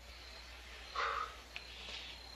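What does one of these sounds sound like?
A young woman gasps in fright.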